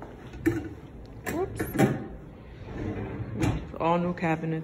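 A drawer slides open and shut.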